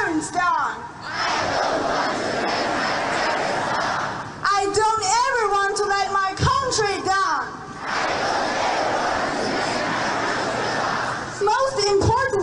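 A large crowd shouts together in unison.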